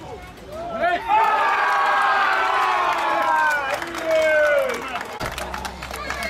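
Spectators nearby shout and cheer loudly.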